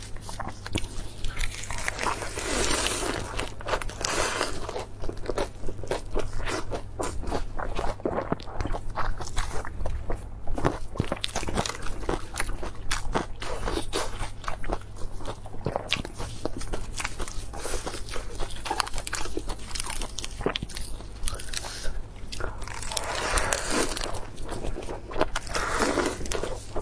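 A young woman chews crunchy lettuce loudly and wetly, close to a microphone.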